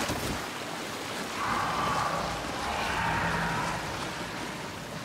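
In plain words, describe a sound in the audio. A waterfall splashes steadily nearby.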